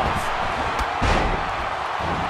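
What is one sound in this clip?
A body slams hard onto a wrestling mat with a thud.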